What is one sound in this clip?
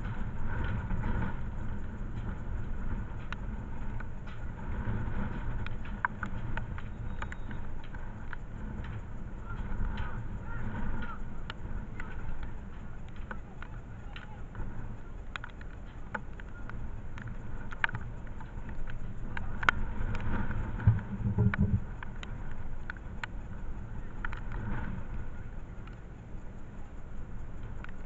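A corner flag flaps in the wind.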